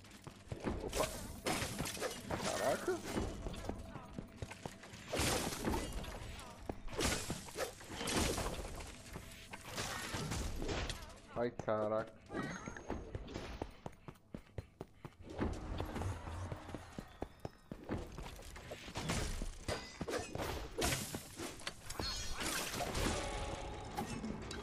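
Video game sword clashes and hits land in quick bursts.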